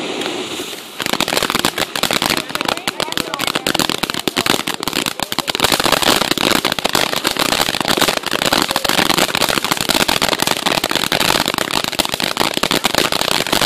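Firework crackles pop and snap rapidly.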